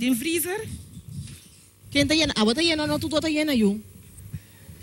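A woman speaks loudly and with animation.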